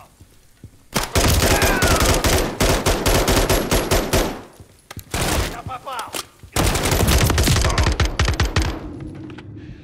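Rapid automatic gunfire bursts close by, echoing.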